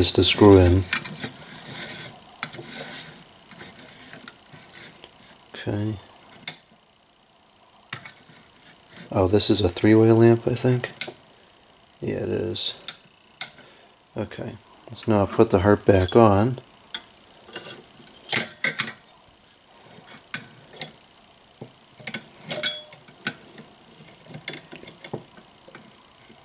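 A plastic bulb scrapes and clicks as it is screwed into a lamp socket.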